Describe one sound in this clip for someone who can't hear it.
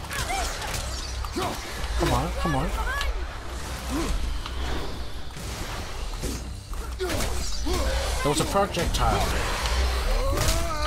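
An axe strikes a creature with heavy thuds.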